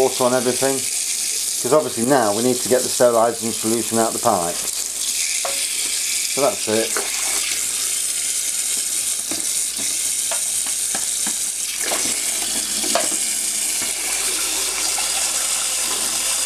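Water runs steadily from a tap into a metal sink.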